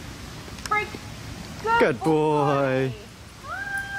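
A woman calls out excitedly in a high voice.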